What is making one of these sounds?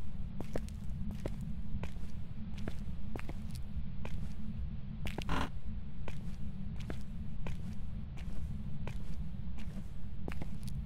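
Slow footsteps thud on a hard floor.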